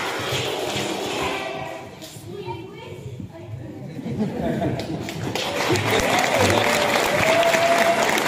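Young children clap their hands.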